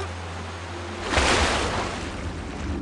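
A loud splash sounds as a body plunges into water.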